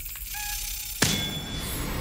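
A heavy lock opens with a loud clunk.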